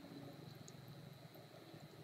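Liquid pours into a metal strainer.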